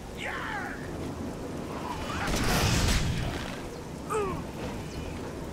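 Small creatures screech and snarl.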